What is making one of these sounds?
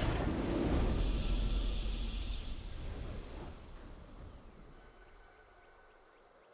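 A triumphant game fanfare blares and fades away.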